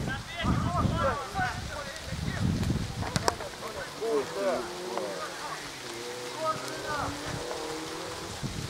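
Young men shout to each other across an open football pitch.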